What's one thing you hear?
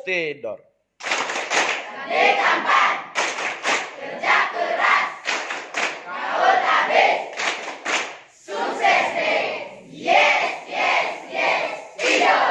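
A large group of teenagers sings together in a room.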